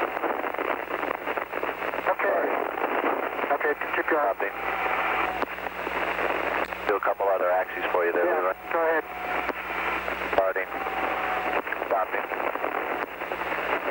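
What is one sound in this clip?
A man speaks calmly over a crackly, muffled radio link.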